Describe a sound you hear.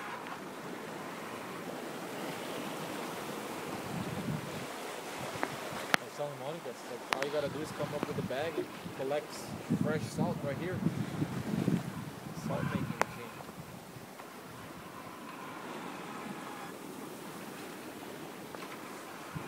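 Wind blusters across the open water.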